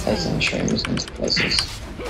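Clashing fight sound effects ring out from a game.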